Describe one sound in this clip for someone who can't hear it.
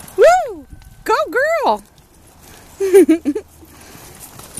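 A pony whinnies loudly in shrill bursts.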